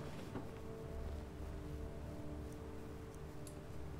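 A wooden cupboard creaks open.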